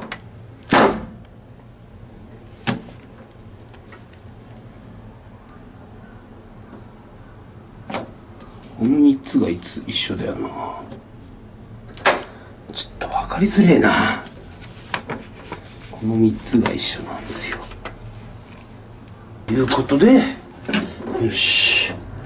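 Wires rustle and click as hands handle them close by.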